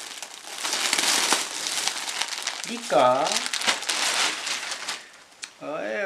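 Plastic gift wrapping crinkles and rustles as it is torn open.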